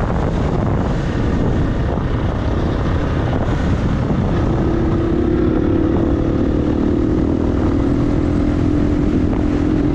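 A dirt bike engine revs and drones up close.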